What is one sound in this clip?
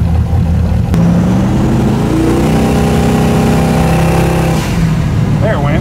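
A car engine revs up and shifts as the vehicle accelerates.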